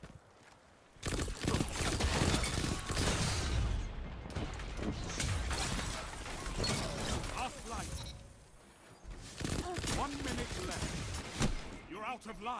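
Gunshots fire in rapid bursts, loud and close.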